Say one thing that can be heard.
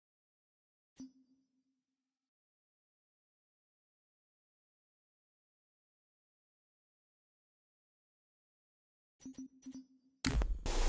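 Short electronic menu blips sound.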